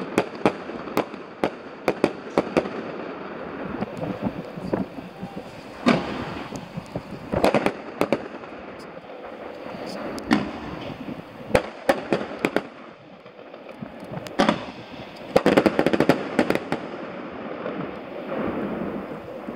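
Fireworks bang and crackle in the distance, echoing around.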